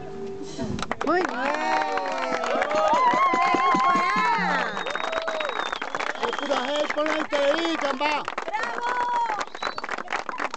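A group of children sing together outdoors.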